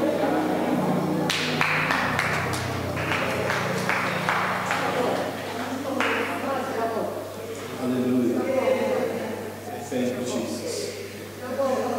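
A man speaks calmly into a microphone, his voice carried through loudspeakers.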